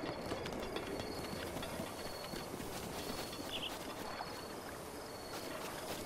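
Footsteps run softly over grass.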